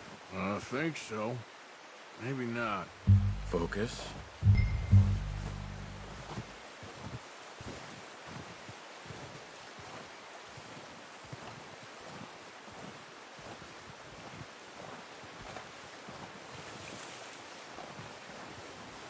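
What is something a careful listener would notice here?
Footsteps crunch softly through deep snow.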